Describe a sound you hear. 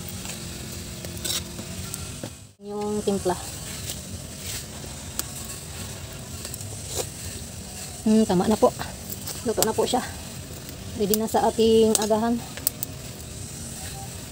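A metal ladle scrapes and clinks against a pot.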